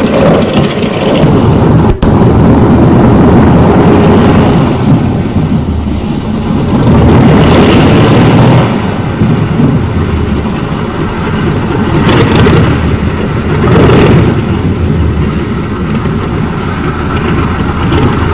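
A propeller plane's engine roars steadily as the plane taxis.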